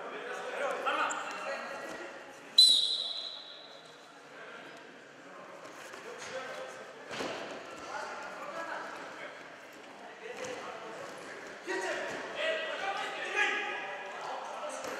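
Feet scuff and thud on a padded mat.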